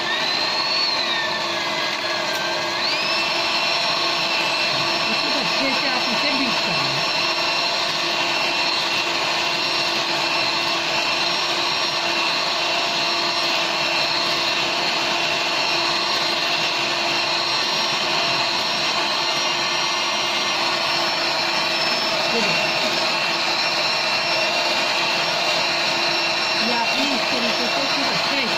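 An electric hand mixer whirs steadily as it whips egg whites.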